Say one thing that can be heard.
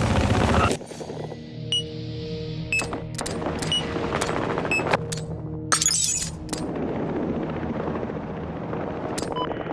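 Short menu clicks and beeps sound now and then.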